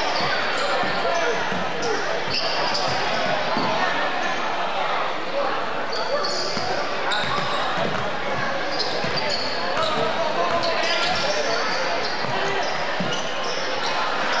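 A crowd chatters and murmurs in a large echoing gym.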